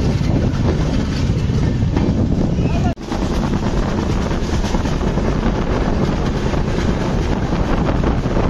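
A train rumbles and clatters along the tracks at speed.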